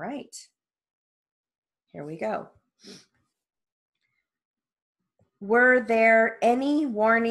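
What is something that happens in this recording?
A woman speaks close to a microphone, pausing between phrases.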